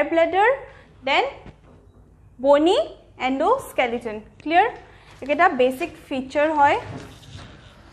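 A young woman speaks with animation, close by.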